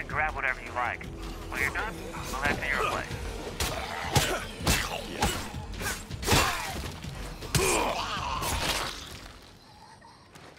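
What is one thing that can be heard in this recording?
Heavy blows thud and smack in a close fight.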